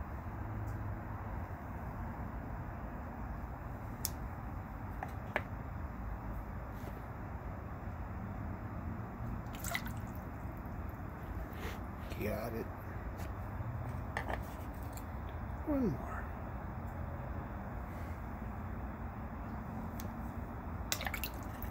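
Water trickles and bubbles softly in a tank.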